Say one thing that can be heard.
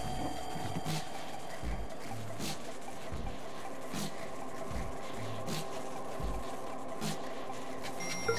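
Soft footsteps pad slowly across a wooden floor.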